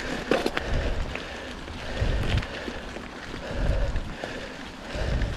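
A bicycle rattles and clicks over bumps.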